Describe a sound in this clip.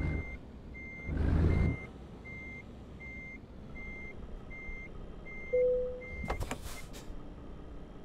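A truck's warning beeper pulses evenly.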